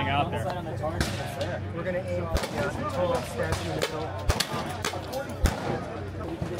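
A shotgun fires sharp, loud blasts outdoors.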